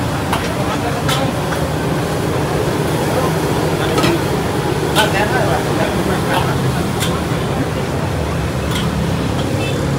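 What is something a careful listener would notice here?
Metal spatulas clang and scrape against woks.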